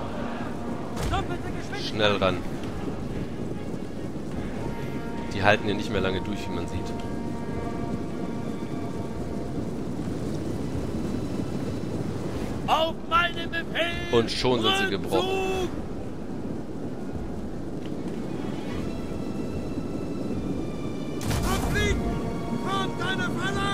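Many soldiers shout and cry out in bursts.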